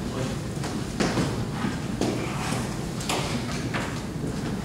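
Clicks and knocks sound as a man handles a microphone.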